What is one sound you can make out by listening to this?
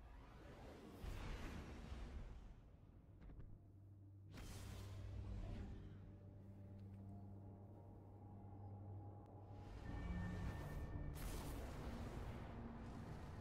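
A deep whooshing rush swells and fades.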